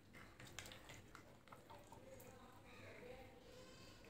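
A hand squelches and mixes a wet batter in a bowl.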